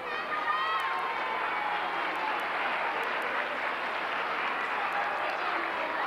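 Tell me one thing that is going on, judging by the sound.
A crowd of young children shout and cheer excitedly.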